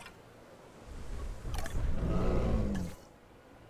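A large dinosaur growls with a deep, rumbling roar.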